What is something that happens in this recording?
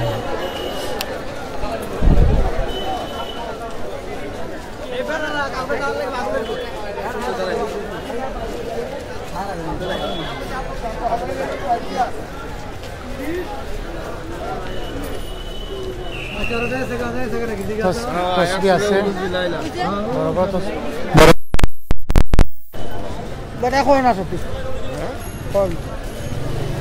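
People chatter and call out nearby in a busy crowd.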